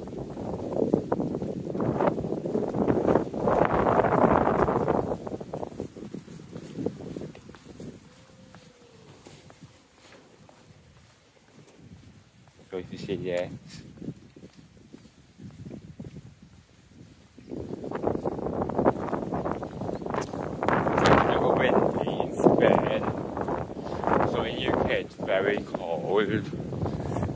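Wind gusts blow against the microphone outdoors.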